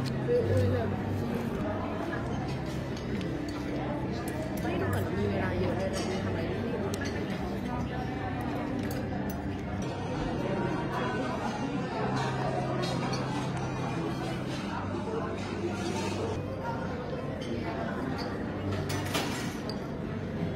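Many voices chatter in the background of a large room.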